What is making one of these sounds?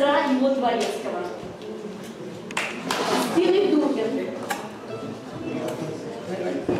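Guests murmur and chat quietly at their tables.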